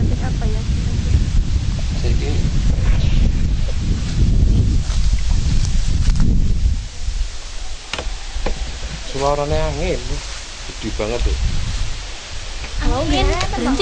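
Teenage girls chatter and laugh together close by, outdoors.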